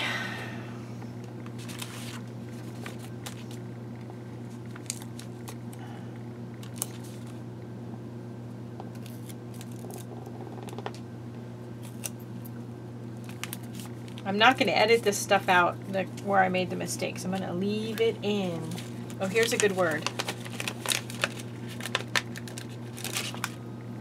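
Paper rustles and crinkles as sticker sheets are handled.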